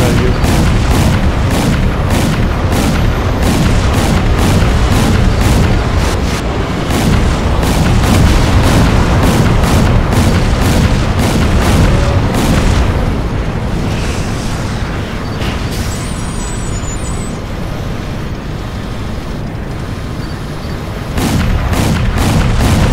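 A heavy engine rumbles low and steady.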